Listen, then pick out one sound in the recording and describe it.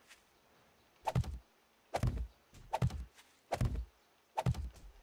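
A shovel digs into soil with repeated heavy thuds.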